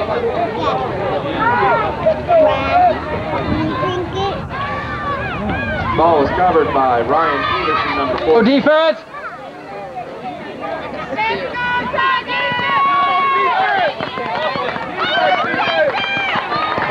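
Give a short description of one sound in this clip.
Many young children chatter and shout close by outdoors.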